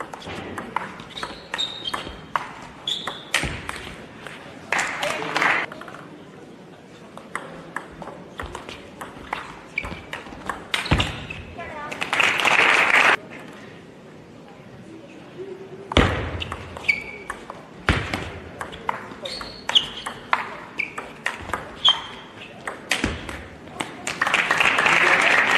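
A table tennis ball clicks rapidly back and forth off paddles and the table in a large echoing hall.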